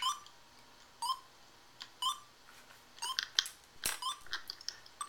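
Short electronic beeps tick once a second as a game timer counts down.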